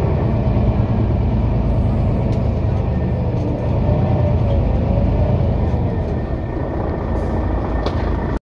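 Cars drive past on the road.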